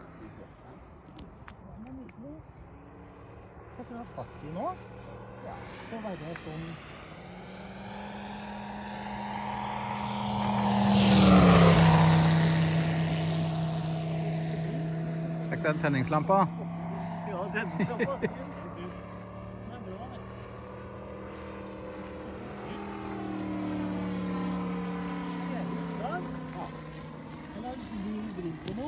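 A propeller engine drones steadily overhead, then roars loudly as a small plane sweeps close past and its pitch drops.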